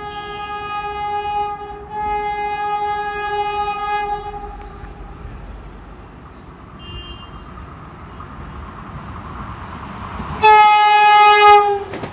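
A train rumbles along the tracks, growing louder as it approaches.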